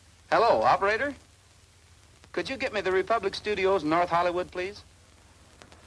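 A man talks into a telephone in a calm, friendly voice.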